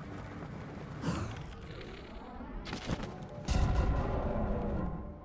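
Electric bolts crackle and strike in a game.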